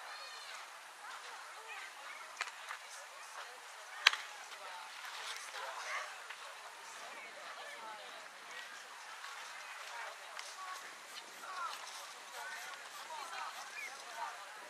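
Children and adults shout and call out across an open field.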